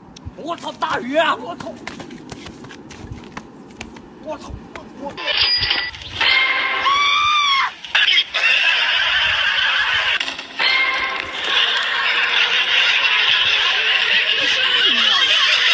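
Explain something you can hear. Young men shout and laugh excitedly close by.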